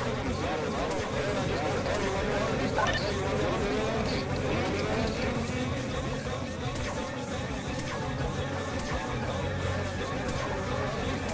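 A laser gun fires with short zapping bursts.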